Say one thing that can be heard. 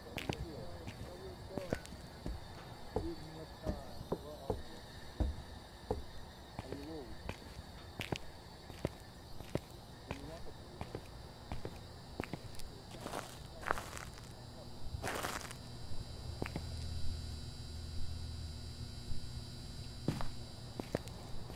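Footsteps thud steadily on hard ground and floor.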